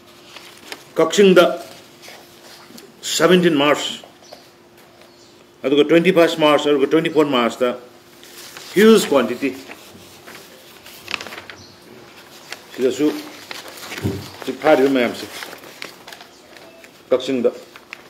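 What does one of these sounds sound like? A middle-aged man speaks calmly and haltingly into microphones, with pauses between phrases.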